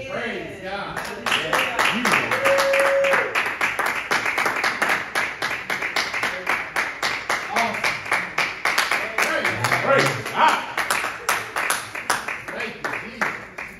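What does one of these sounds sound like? People clap their hands in a steady rhythm.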